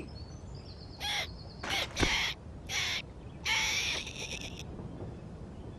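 A squirrel squeaks in quick, high bursts.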